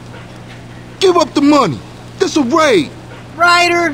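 A man shouts loudly and angrily.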